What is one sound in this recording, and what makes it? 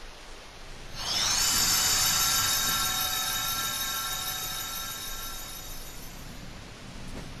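A bright magical burst rings out and slowly fades.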